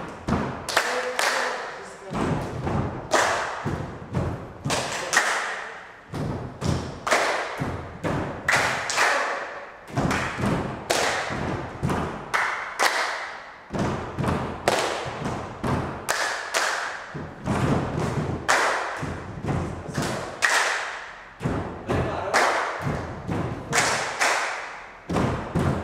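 A group of people clap their hands in a quick rhythm in an echoing room.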